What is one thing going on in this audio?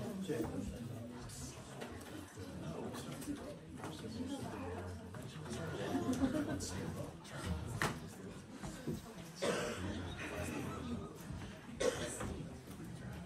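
A group of women and men sing together in a room with some echo.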